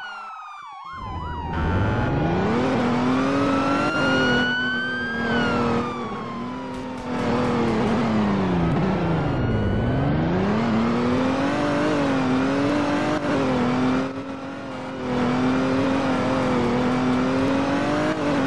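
A car engine hums and revs as the car speeds up and slows down.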